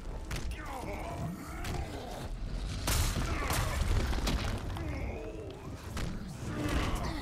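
Heavy punches thud and smack.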